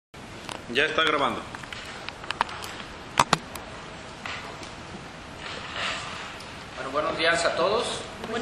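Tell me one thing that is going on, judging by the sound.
A man speaks from across a room.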